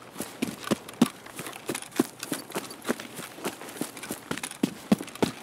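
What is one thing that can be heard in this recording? Footsteps rustle quickly through grass at a steady pace.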